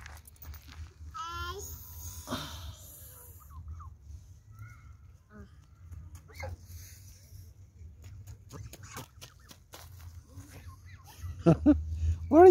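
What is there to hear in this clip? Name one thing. A little girl speaks and squeals in a high voice close by.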